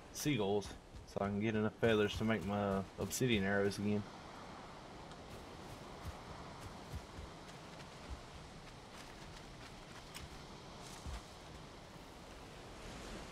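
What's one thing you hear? Footsteps thud softly on the ground.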